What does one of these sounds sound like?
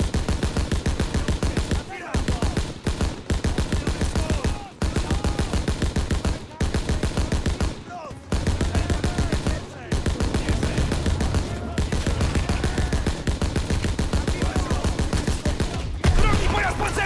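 A machine gun fires long, rapid bursts close by.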